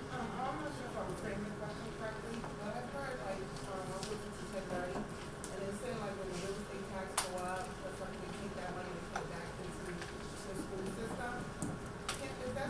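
A woman speaks steadily into a microphone.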